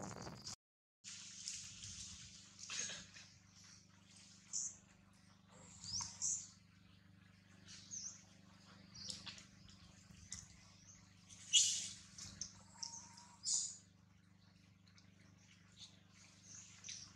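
Monkeys scamper through dry leaves, rustling them.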